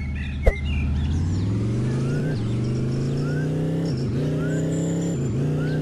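A car engine revs up, climbing in pitch and dropping briefly with each gear change.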